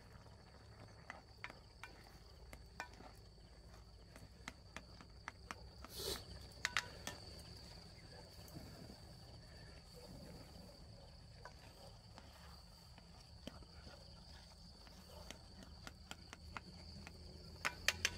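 A spatula stirs and scrapes inside a metal pot.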